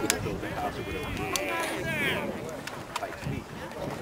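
Lacrosse sticks clack together as players scramble for the ball.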